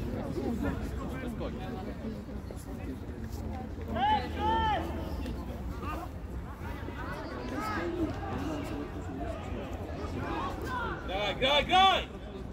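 Young men shout loudly to each other across an open outdoor pitch.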